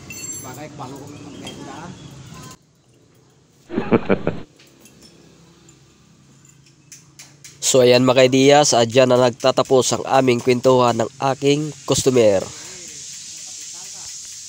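Steel spokes clink against a motorcycle wheel hub.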